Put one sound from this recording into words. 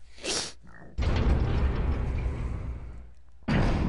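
Heavy metal doors slide open with a loud rumble.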